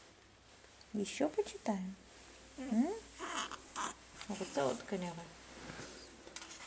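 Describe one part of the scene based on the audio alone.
A young woman talks softly and gently to a baby up close.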